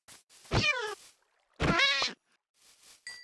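A sheep bleats loudly nearby.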